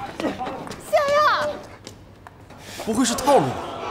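A young woman speaks cheerfully and laughs.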